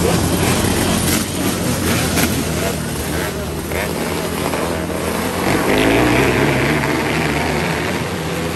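Engines rev and whine higher as cars pass close by.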